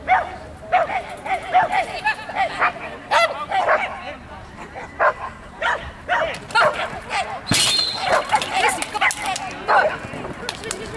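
A woman calls out commands loudly outdoors.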